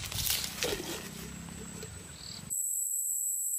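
A knife hacks through thick plant stalks.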